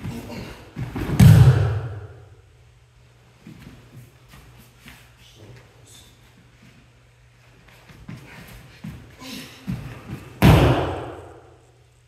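Bodies thud heavily onto a padded mat.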